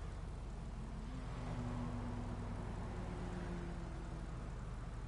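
A car drives past on a road and fades.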